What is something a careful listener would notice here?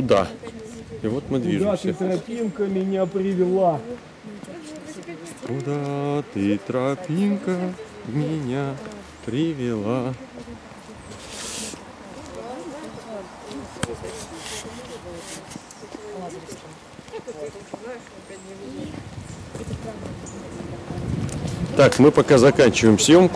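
A middle-aged man talks close to a microphone with animation.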